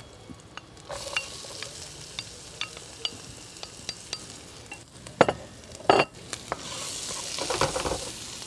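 Chopped onions sizzle in a hot frying pan.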